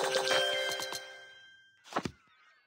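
A bright game chime rings and fades.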